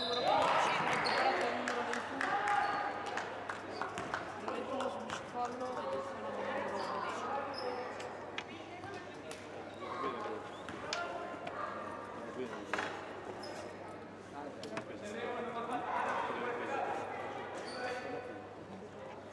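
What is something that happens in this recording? Players call out to each other in a large echoing hall.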